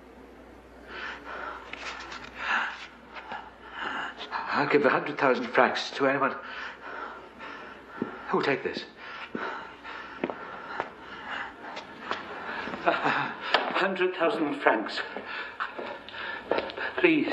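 A middle-aged man speaks loudly and forcefully in an echoing stone room.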